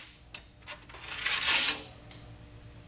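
A thin metal sheet scrapes and rattles as it is lifted.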